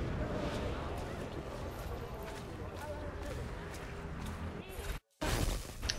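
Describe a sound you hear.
Footsteps tread on a hard street.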